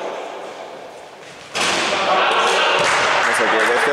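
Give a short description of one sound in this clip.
Sneakers squeak on a wooden court in an echoing hall.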